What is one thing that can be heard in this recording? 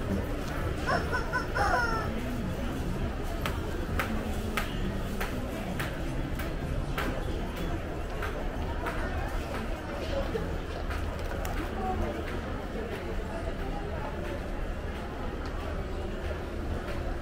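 A crowd murmurs indoors with a steady low hum.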